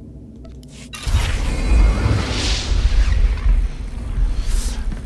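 A magical whooshing shimmer swells and fades.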